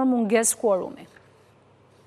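A woman speaks clearly and calmly into a microphone.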